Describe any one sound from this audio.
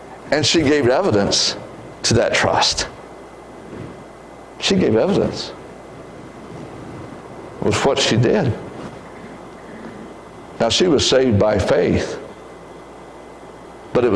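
A man speaks calmly through a microphone in a large echoing hall, pausing between phrases.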